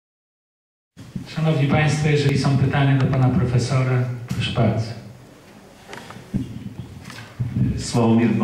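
A man speaks steadily into a microphone over loudspeakers in a large hall.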